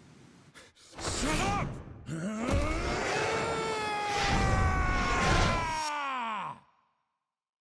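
A young man screams in anguish, his cry rising and then falling away.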